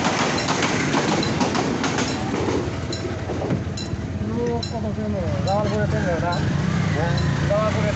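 A motor rickshaw engine putters nearby.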